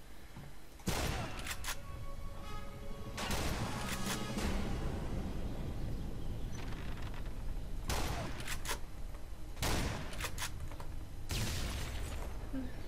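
A shotgun fires loud booming shots.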